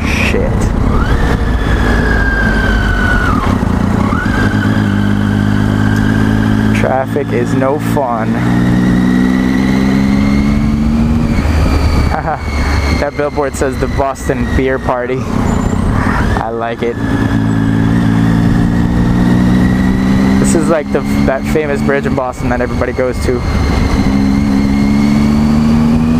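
A motorcycle engine hums steadily up close, its pitch rising and falling gently.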